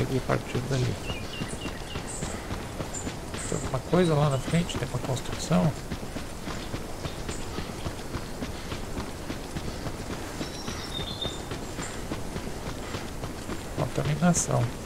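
Footsteps run steadily along a paved road.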